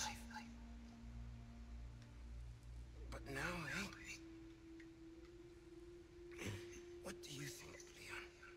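A man speaks slowly and calmly in a low, husky voice, close by.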